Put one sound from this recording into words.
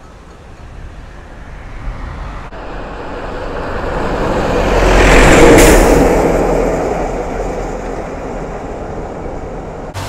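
A bus drives past close by with a loud engine roar that rises and fades.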